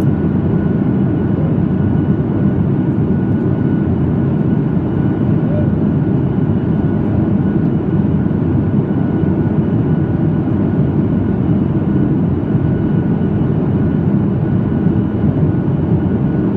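Jet engines roar steadily inside an airliner cabin.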